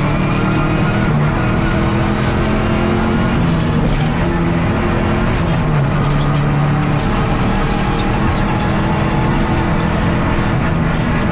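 A car engine roars loudly from inside the cabin, revving up and down.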